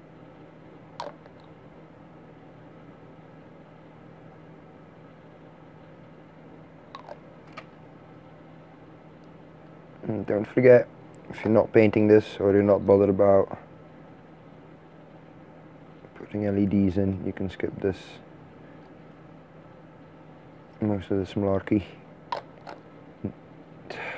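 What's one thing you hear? Small plastic parts click together.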